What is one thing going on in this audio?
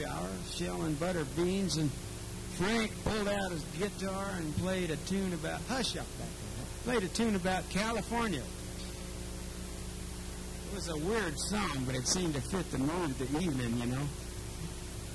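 A middle-aged man sings into a microphone.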